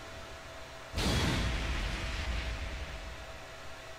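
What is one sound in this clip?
A deep booming impact strikes and rumbles away.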